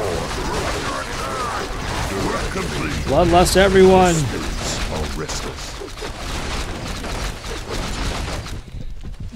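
Weapons clash and spells crackle in a busy game battle.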